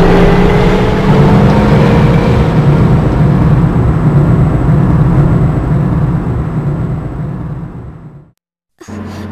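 A heavy lift rumbles loudly as it descends.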